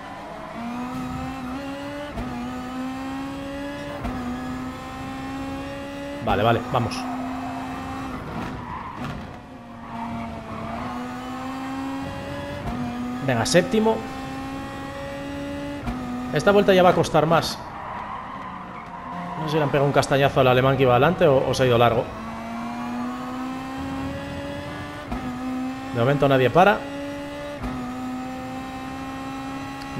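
A racing car engine roars, climbing and dropping through the gears.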